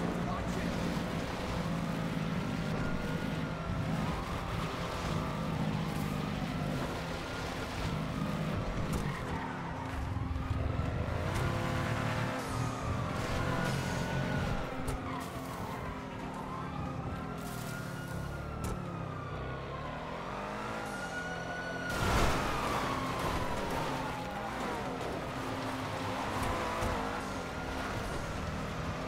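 A heavy vehicle's engine roars steadily as it drives fast.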